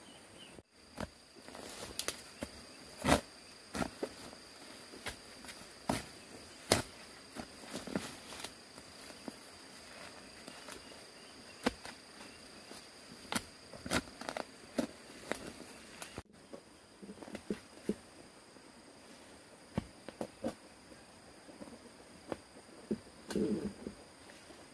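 A hoe chops into dry soil with repeated dull thuds.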